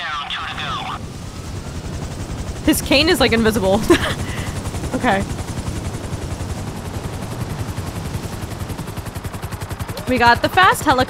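A helicopter's rotor thumps rapidly and steadily.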